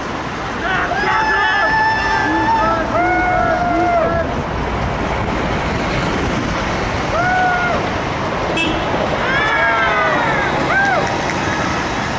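A group of adults shout chants in the open air.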